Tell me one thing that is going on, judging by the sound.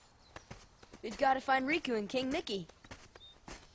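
A young man speaks eagerly.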